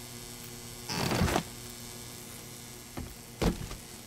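A heavy door swings open.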